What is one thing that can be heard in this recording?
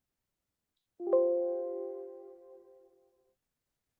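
A computer alert chime sounds once and rings out.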